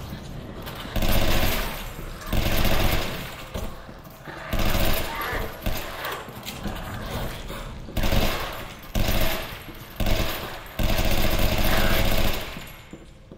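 A rifle fires loud bursts of gunshots.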